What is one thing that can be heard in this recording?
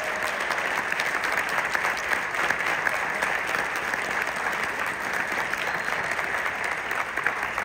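An audience claps and applauds loudly in a large hall.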